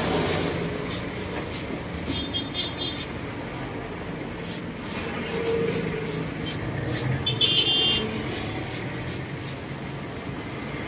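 Cutters snip and click sharply now and then.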